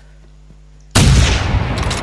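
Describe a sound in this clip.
A gun fires loudly and rumbles.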